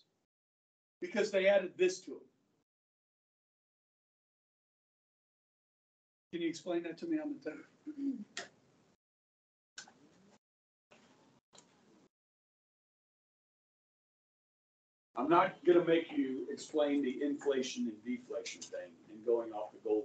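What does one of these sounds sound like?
A middle-aged man speaks loudly and with animation, in bursts with pauses.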